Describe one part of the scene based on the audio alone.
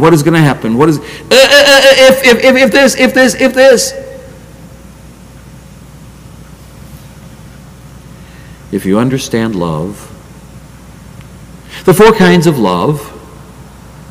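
An elderly man speaks forcefully into a microphone, pausing between phrases.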